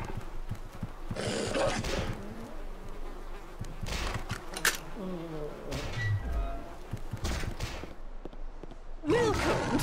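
Weapons strike a wooden door with heavy thuds.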